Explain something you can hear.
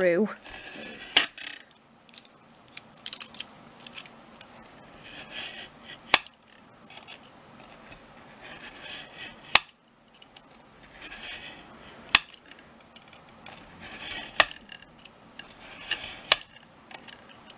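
A craft knife scores through card with short scratchy strokes.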